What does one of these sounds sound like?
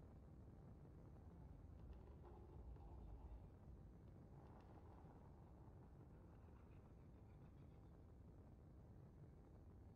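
Spaceship engines rumble steadily.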